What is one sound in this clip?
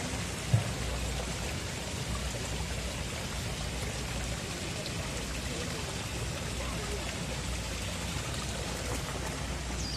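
A small stream of water splashes and trickles over stones.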